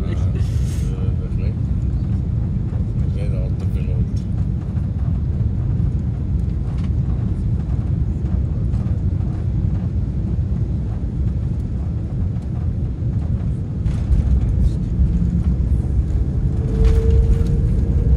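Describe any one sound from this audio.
A jet's engines roar steadily as it speeds down a runway.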